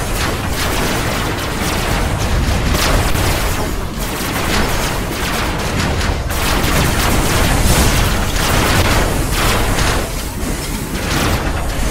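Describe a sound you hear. Engines hum steadily.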